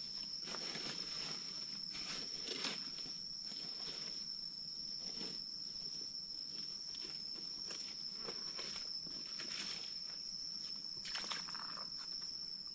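Hands splash and scoop water in a shallow pool.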